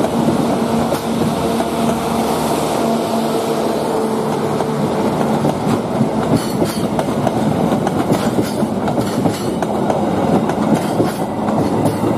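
A passenger train rumbles past close by.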